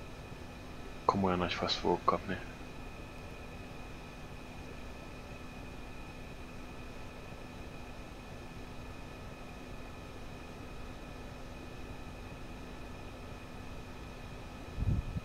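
A jet engine idles with a steady low hum.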